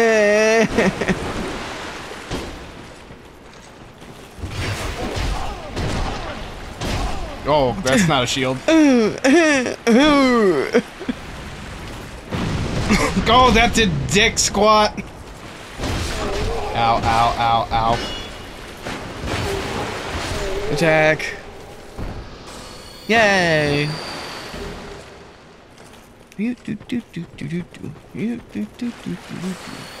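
Two men talk and react with animation, close to microphones.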